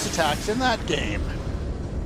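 Laser blasts zap in rapid bursts.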